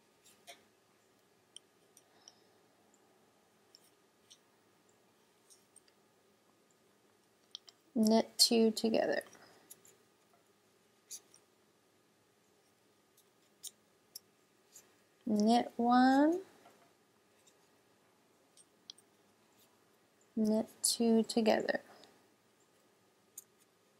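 Wooden knitting needles click and tap softly against each other.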